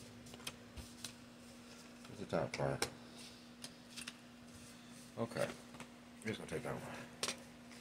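Cards shuffle and tap on a table.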